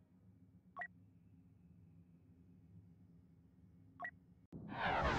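Two short menu blips sound.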